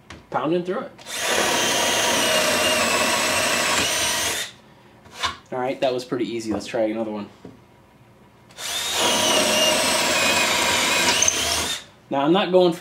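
A cordless drill whirs steadily as it drills into wood.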